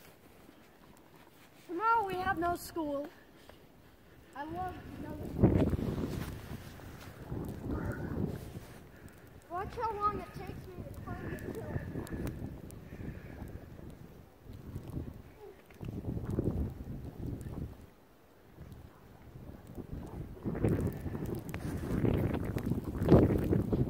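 Boots crunch through deep snow.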